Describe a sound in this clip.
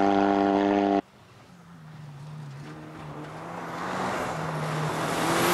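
A rally car engine roars, growing louder as the car approaches.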